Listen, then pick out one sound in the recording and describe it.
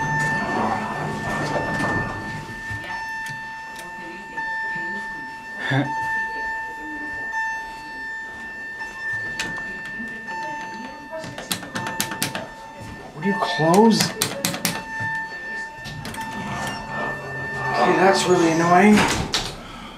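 An elevator hums with a steady tone.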